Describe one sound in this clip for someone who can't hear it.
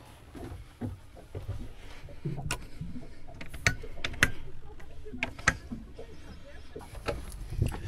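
Handling noise rustles and bumps close by.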